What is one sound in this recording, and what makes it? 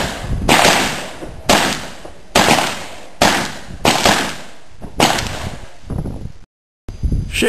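A pistol fires a quick series of sharp, loud shots outdoors.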